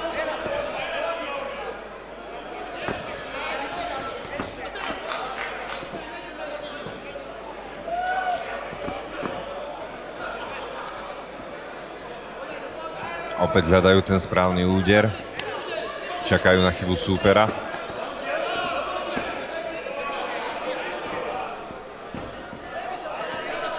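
A crowd murmurs and chatters in a large hall.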